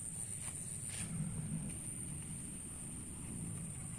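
Fingers scratch softly through dry soil.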